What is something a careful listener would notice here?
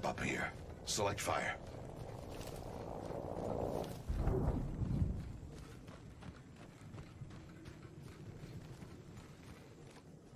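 Footsteps run over dry ground.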